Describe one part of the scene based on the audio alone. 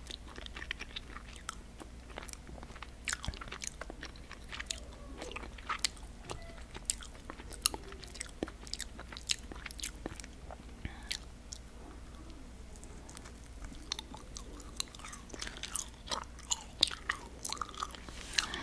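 Crunchy snacks crackle close to a microphone as a woman bites and chews.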